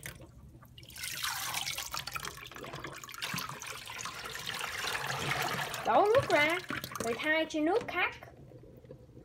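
Water pours and splashes from a colander.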